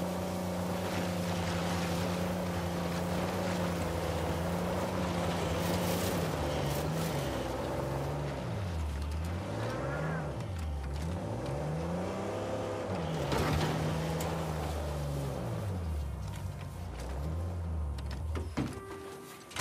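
An off-road vehicle's engine hums and revs up and down as it climbs.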